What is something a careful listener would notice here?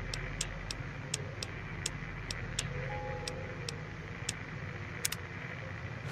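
Short, sharp menu clicks tick at a steady pace.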